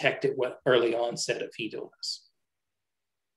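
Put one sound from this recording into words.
A man speaks calmly through a microphone, as in an online talk.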